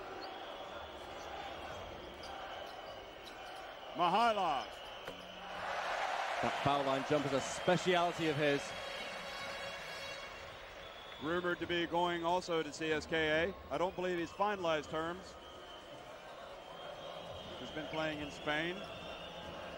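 A large indoor crowd murmurs and cheers, echoing through a big hall.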